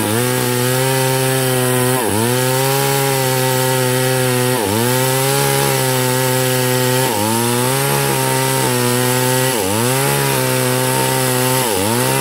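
A chainsaw chain cuts through a log.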